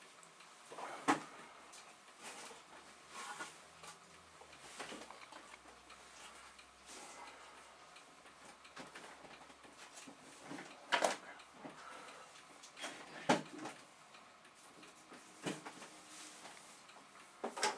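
Objects knock and clatter nearby as a man handles them.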